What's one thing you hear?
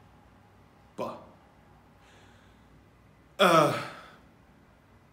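A man laughs softly.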